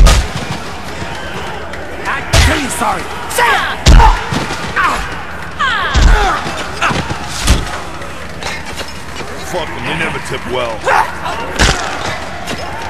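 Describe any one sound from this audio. Heavy punches and blows land with dull thuds.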